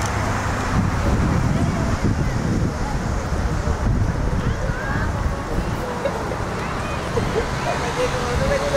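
Young women call out across a field in the distance.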